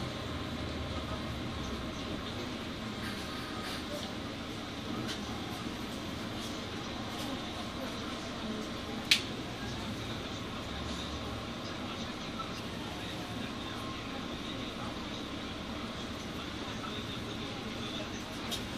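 A bus engine rumbles steadily while creeping through slow traffic.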